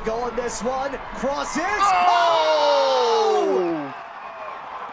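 A large crowd roars and cheers.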